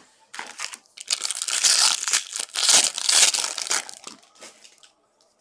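Foil wrappers crinkle and tear loudly.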